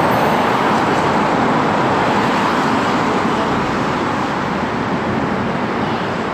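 Traffic rushes past loudly on a nearby road.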